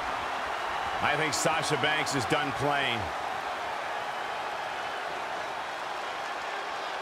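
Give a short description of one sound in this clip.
A crowd cheers and murmurs steadily in a large arena.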